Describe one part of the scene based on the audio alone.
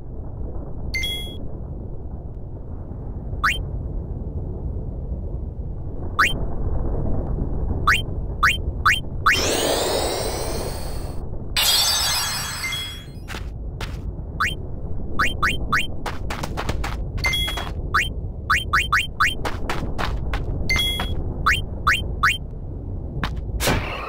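Menu selections click sharply, over and over.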